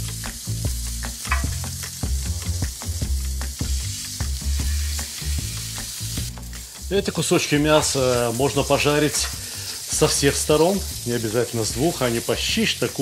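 Meat sizzles on a hot pan.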